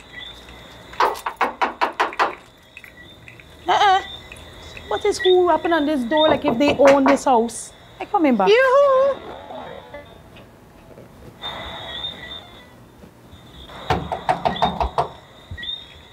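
Knuckles knock rapidly on a door.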